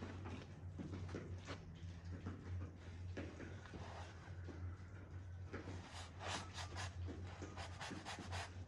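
A paintbrush swishes and scrapes across canvas.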